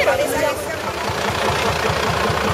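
A tractor engine runs close by.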